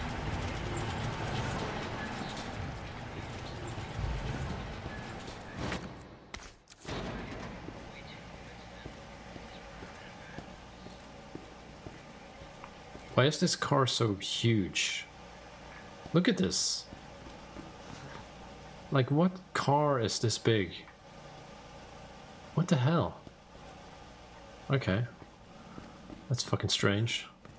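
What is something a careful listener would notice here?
Footsteps walk slowly on concrete.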